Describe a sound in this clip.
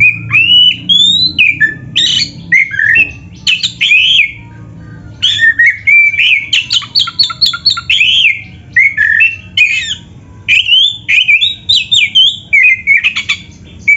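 A songbird sings loud, varied whistling phrases close by.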